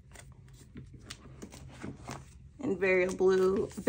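A binder page turns with a soft plastic flap.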